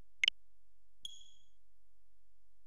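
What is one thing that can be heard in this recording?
A bright electronic chime rings briefly.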